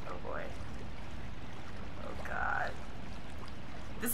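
Water splashes as a child wades in.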